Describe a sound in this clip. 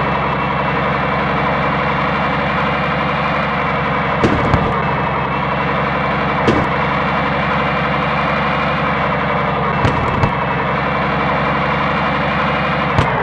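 A truck's diesel engine drones steadily.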